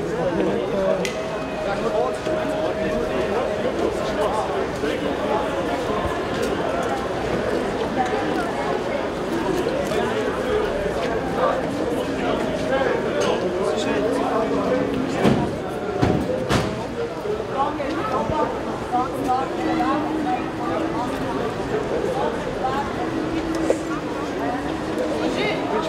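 A crowd of men and women talk and call out all around outdoors.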